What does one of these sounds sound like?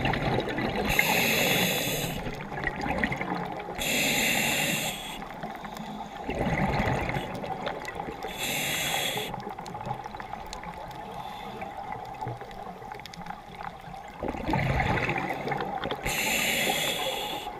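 Underwater, a diver breathes out through a regulator, with bubbles rushing in bursts.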